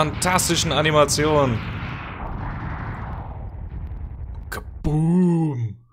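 Electronic game explosions burst and rumble, then fade away.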